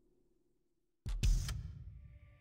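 A game menu selection makes a sudden, sharp whoosh.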